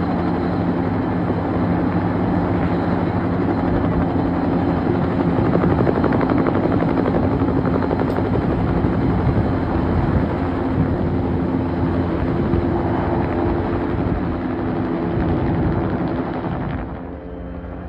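A helicopter's rotor thumps loudly close by, then fades slightly.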